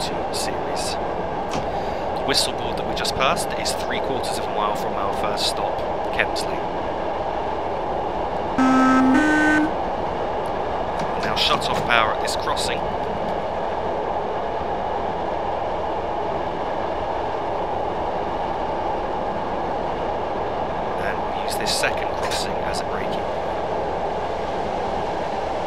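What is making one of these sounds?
A train engine rumbles steadily while the train rolls along the track.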